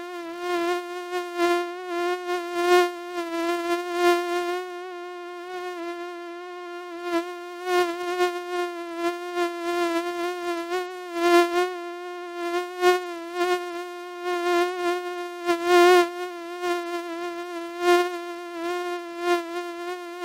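Mosquitoes whine with a steady, close buzz.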